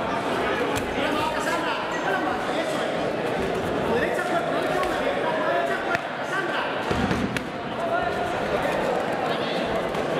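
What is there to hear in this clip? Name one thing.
Gloves and kicks thud against bodies now and then.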